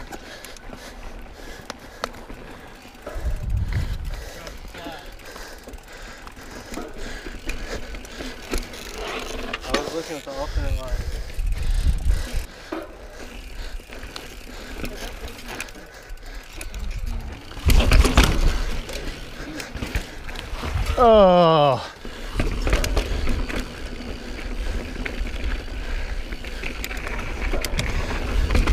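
Bike tyres rumble and crunch over rock and gravel.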